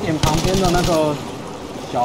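A machine gun fires a rapid burst close by.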